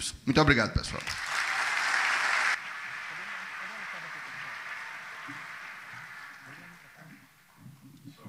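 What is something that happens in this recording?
An audience applauds and then fades away.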